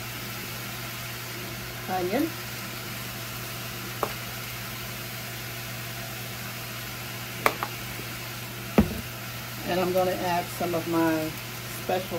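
Food sizzles softly in a pot on a stove.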